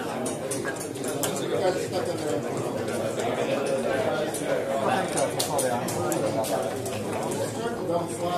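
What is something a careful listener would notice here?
Plastic checkers click against a board.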